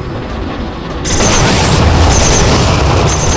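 An energy gun fires a rapid burst of crackling shots.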